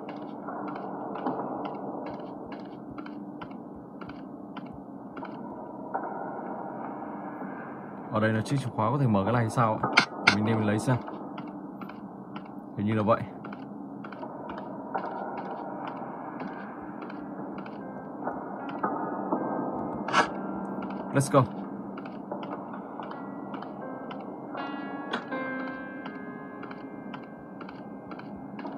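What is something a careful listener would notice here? Game footsteps tap steadily through a small tablet speaker.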